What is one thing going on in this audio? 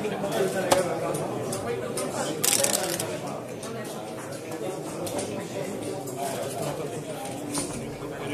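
Plastic game pieces click against a board as they are moved.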